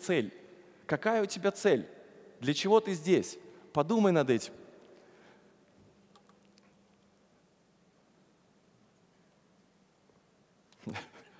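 A man speaks with animation through a headset microphone in a large echoing hall.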